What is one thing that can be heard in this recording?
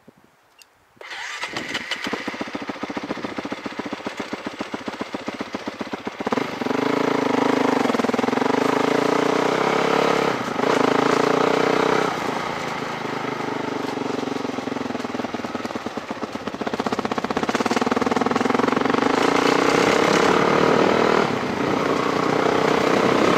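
A motorcycle engine runs close by, revving up and down.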